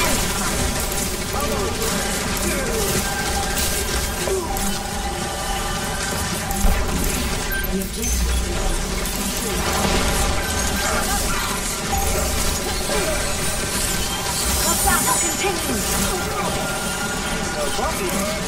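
A video game's energy beam hums steadily.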